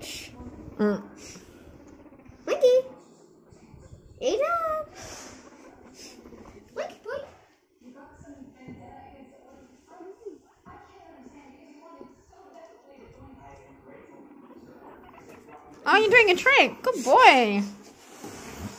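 A guinea pig squeaks in high, rising calls.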